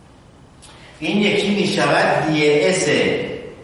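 A middle-aged man speaks calmly and clearly nearby.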